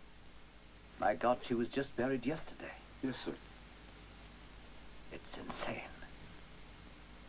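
A second man answers in a firm voice nearby.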